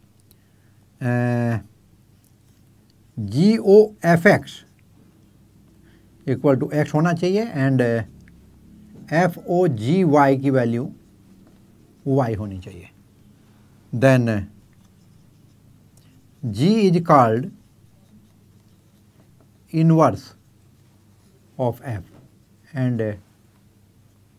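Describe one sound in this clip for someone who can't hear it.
An elderly man speaks calmly in short phrases, close by, with pauses between.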